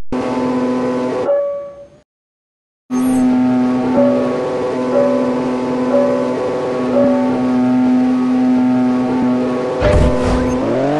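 A racing car engine idles with a steady hum.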